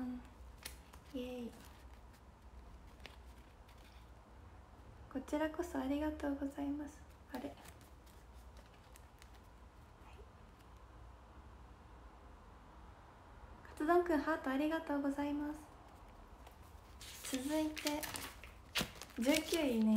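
Notebook pages rustle and flip.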